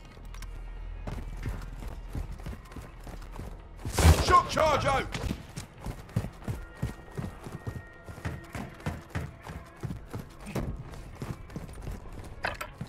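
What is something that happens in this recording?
Footsteps run quickly over hard ground and up metal stairs.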